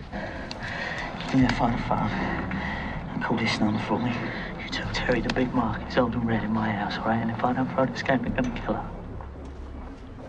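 A young man speaks tensely and urgently up close.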